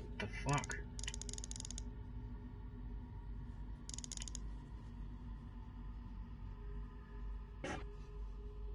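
A dial clicks as it turns.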